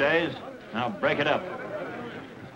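A man speaks loudly and with force, in an old film soundtrack.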